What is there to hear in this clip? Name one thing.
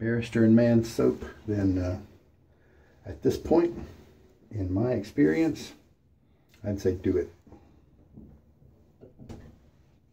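A towel rustles as a man handles it.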